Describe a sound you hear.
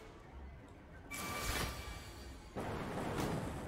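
Lightning cracks with a sharp zap.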